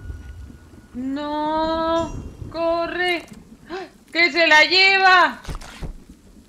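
A young woman speaks in a high, sing-song voice through a microphone.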